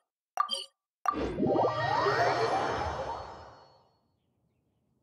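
A shimmering magical chime swells with a rising sweep and slowly fades.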